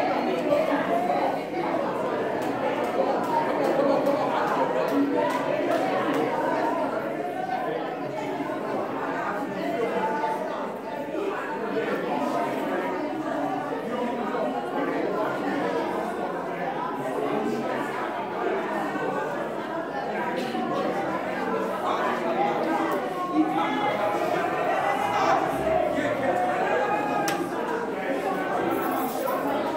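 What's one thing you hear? A drum kit plays.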